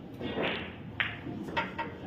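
A cue strikes a pool ball with a sharp tap.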